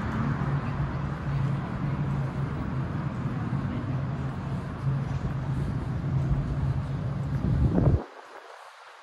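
A bus engine idles with a low hum close by.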